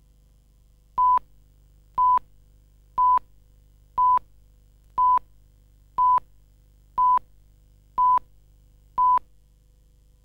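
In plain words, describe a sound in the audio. A short, high beep sounds once every second in a steady countdown.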